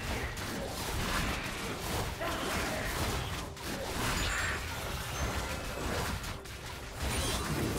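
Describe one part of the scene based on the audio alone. Game combat effects clash and whoosh as characters fight.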